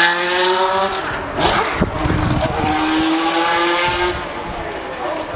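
A racing car engine fades into the distance.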